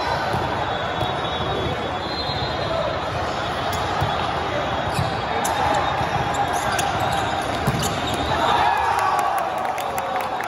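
Sneakers squeak on the court floor.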